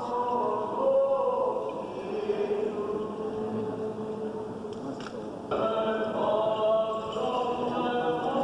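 Men chant a slow, steady hymn together in a resonant room.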